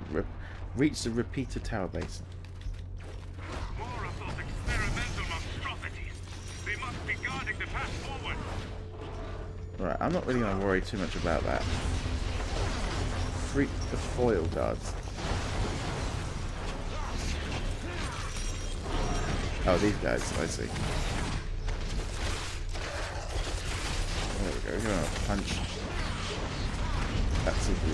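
Game characters fight with thuds and blasts.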